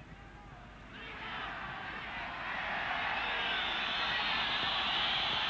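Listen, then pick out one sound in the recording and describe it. A stadium crowd roars louder and louder.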